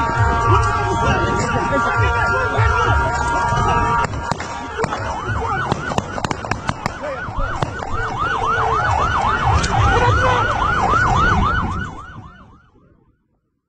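A crowd shouts outdoors at a distance.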